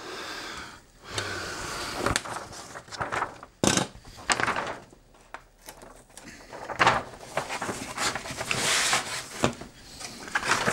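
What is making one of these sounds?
Stiff wrapping paper crinkles and rustles.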